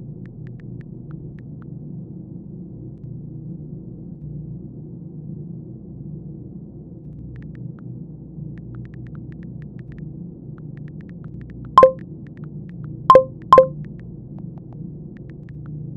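Keys tap softly on a phone keyboard.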